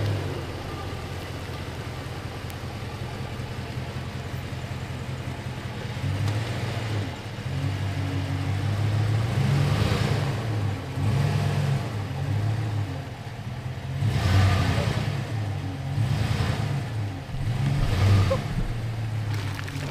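A truck engine idles with a deep rumble and revs up and down.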